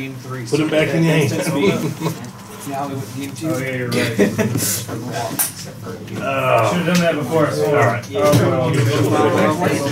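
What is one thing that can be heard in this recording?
Cards riffle and click as a hand shuffles them.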